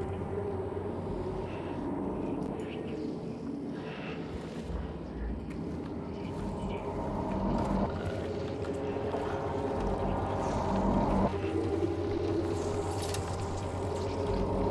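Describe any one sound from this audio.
Game music and ambient sound play steadily from a speaker.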